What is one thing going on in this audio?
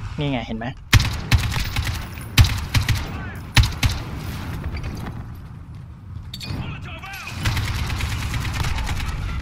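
Rapid gunshots ring out in a large echoing hall.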